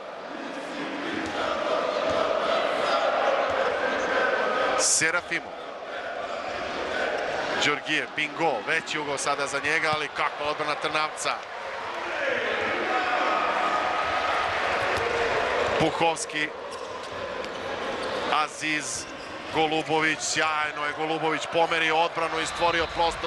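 A ball bounces on a hard court.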